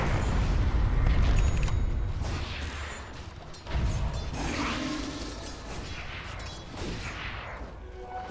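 Magical blasts and crackling effects burst during a fight.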